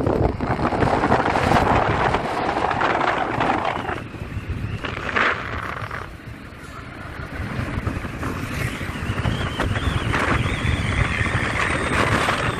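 Wind rushes and buffets loudly past the vehicle.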